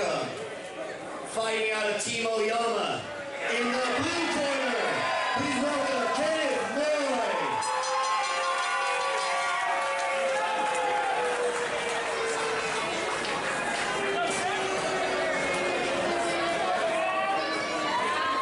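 A man announces loudly through a microphone and loudspeakers, drawing out his words, in a large echoing hall.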